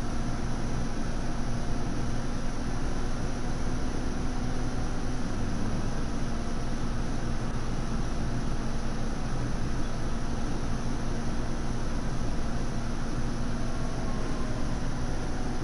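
A car engine hums steadily while driving at speed.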